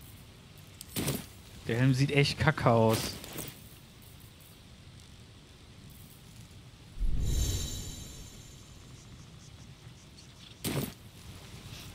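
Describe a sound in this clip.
Short interface clicks sound as a game menu opens and closes.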